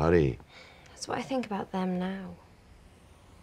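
A young woman answers quietly, close by.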